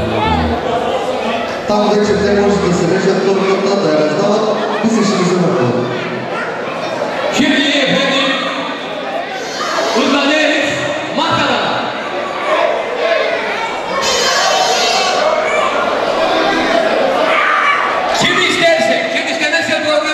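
A band plays loud live music.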